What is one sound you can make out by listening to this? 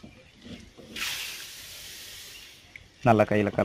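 Seeds pour out of a tin with a soft hiss.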